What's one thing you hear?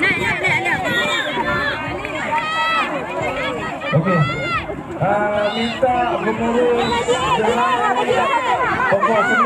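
Young girls shout and cheer excitedly nearby, outdoors.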